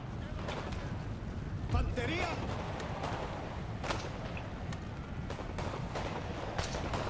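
Cannons boom with a deep rumble.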